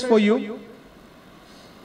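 A man speaks into a microphone, heard over loudspeakers in an echoing hall.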